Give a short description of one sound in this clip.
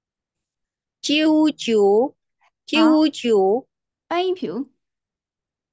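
A woman pronounces syllables slowly and clearly over an online call.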